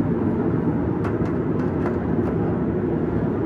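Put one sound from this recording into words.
A metal steamer tray clinks as it is lifted.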